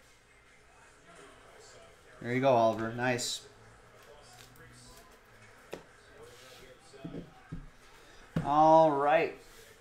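Plastic card sleeves click and rustle in hands.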